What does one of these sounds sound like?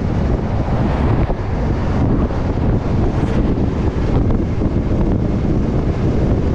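Wind buffets loudly, roaring and rumbling around a moving vehicle.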